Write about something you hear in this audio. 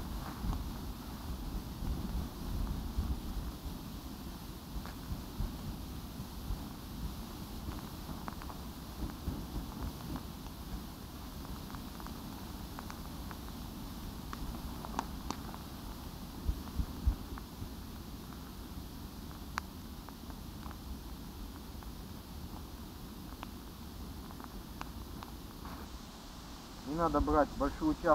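A grass fire crackles and pops.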